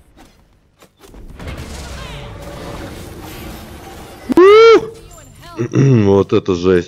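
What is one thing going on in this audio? Blows and magic blasts crash and whoosh in a noisy fight.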